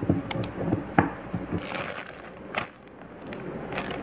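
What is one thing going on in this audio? A plastic food packet rustles as it is laid down.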